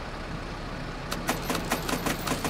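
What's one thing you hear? A ticket printer rattles quickly.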